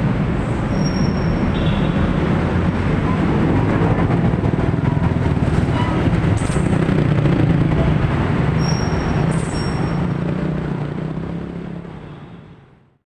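Traffic engines rumble steadily close by.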